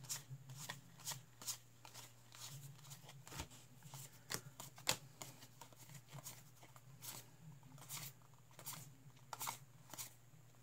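Playing cards snap and slide as they are sorted into piles by hand.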